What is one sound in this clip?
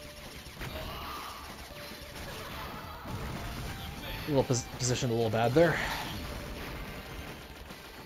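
Electronic shots and explosions crackle rapidly in an arcade game.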